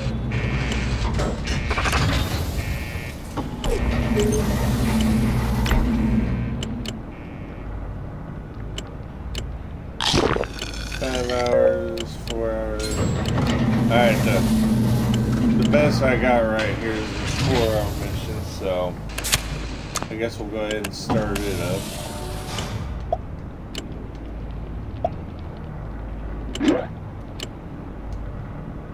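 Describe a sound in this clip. Game menus click and beep as they open and close.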